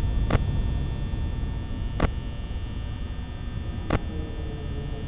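Electronic static hisses and crackles steadily.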